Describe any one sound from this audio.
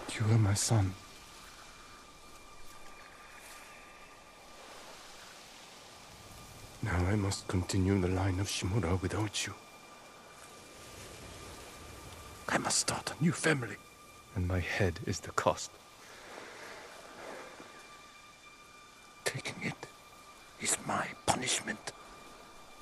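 An older man speaks slowly and gravely, close by.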